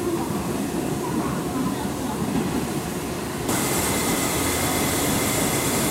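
Steam hisses from a steam locomotive.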